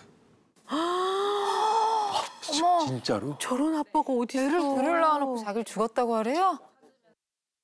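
A middle-aged woman exclaims and talks with animation into a microphone.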